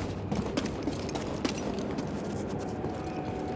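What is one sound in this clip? Footsteps scuff on stone.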